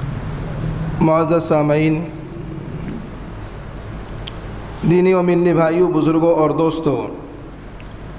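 A man chants in a long, drawn-out melodic voice through a microphone.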